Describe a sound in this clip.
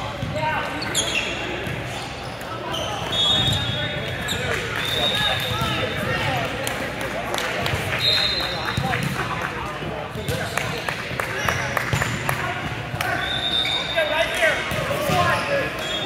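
Players' sneakers squeak sharply on a gym floor.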